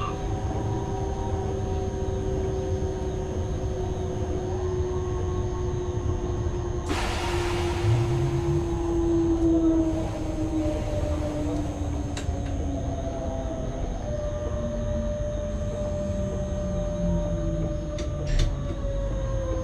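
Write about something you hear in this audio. Wheels rumble over the rails.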